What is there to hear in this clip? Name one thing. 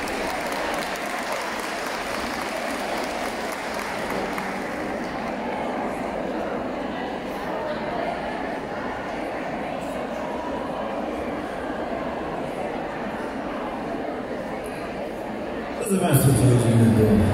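A man sings into a microphone over loudspeakers.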